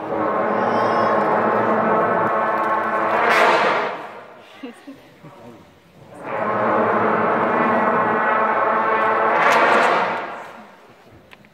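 A brass band plays loud sustained chords that swell and stop, echoing in a large hall.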